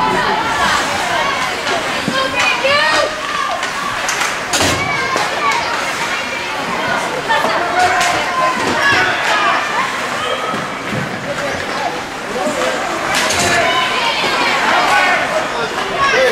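A crowd of spectators shouts and cheers in a large echoing rink.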